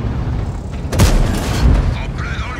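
A shell explodes with a blast.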